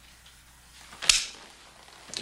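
A man's boots knock on a wooden floor as he stands up.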